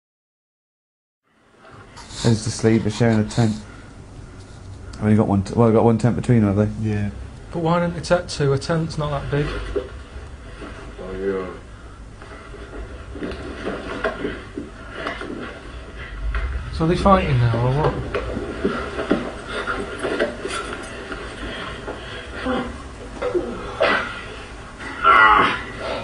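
Men laugh nearby.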